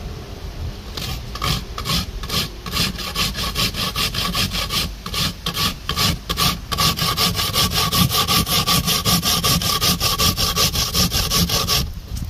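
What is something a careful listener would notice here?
Coconut is scraped briskly on a metal grater in quick rhythmic strokes.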